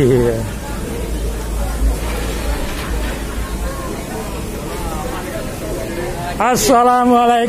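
A crowd of men and women chat quietly in the background.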